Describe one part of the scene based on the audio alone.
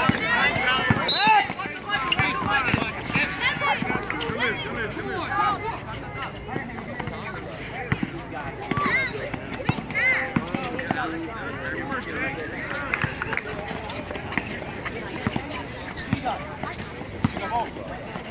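A basketball bounces on an asphalt court.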